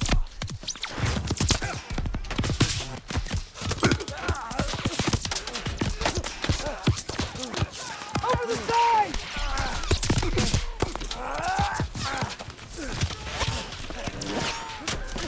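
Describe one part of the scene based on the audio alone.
Gunfire cracks in rapid bursts.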